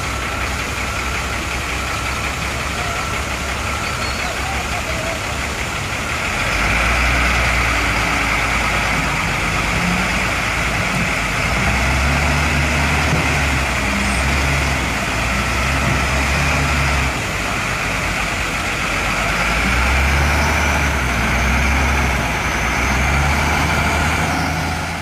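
A heavy loader's diesel engine rumbles and revs hard in bursts.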